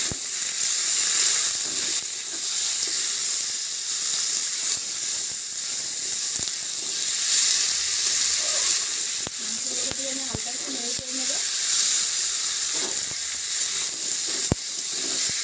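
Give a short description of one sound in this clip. A spatula scrapes and clanks against a metal pan.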